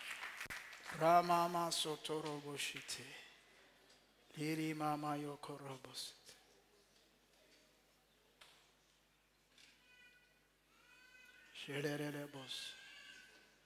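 A man speaks slowly into a microphone, with long pauses.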